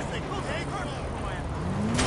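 A motorbike engine revs close by.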